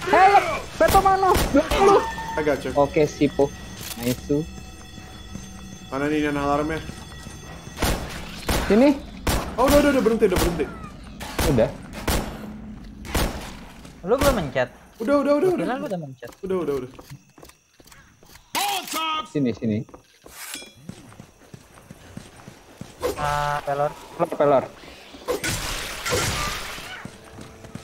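Shotgun blasts ring out again and again.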